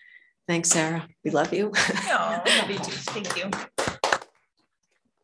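A middle-aged woman speaks through a microphone in a lively, friendly tone.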